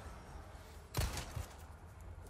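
A knife strikes a body with a sharp thud.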